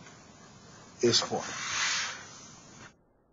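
A pen scratches briefly on paper.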